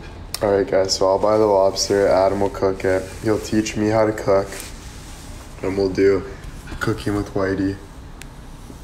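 A young man talks casually, close to the microphone.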